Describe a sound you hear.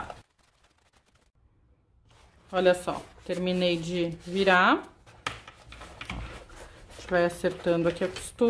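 Fabric rustles softly as hands handle a cloth bag.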